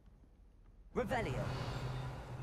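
A magic spell bursts out with a sudden shimmering whoosh.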